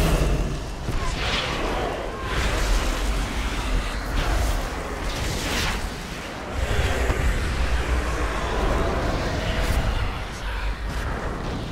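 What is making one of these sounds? Magic spells crackle and whoosh in quick bursts.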